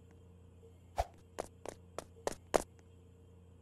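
A game character's footsteps patter quickly on a hard floor.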